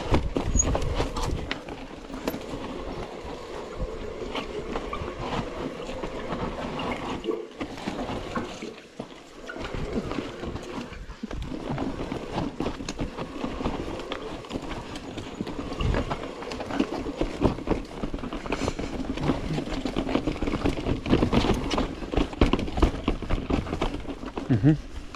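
A bicycle frame and chain clatter over bumps.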